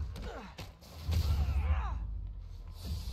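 Glass shatters.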